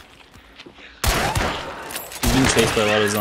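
A gunshot booms loudly and rings out.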